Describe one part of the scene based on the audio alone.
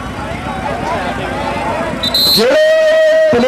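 A crowd of men argue and shout outdoors.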